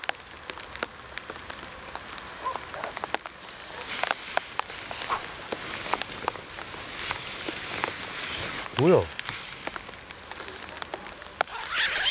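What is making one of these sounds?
Rain patters on a tent roof in quick, uneven taps.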